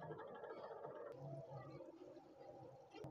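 Tap water runs into a bowl of lentils.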